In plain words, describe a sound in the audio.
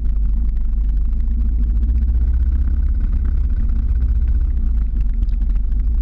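A car drives past close by.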